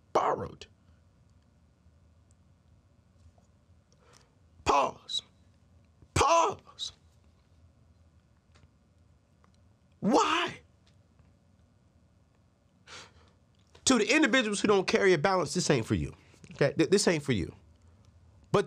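A man speaks into a nearby microphone with animation, in short bursts.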